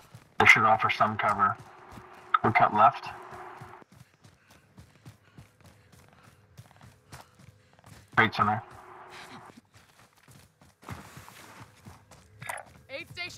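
Footsteps run over grass and gravel.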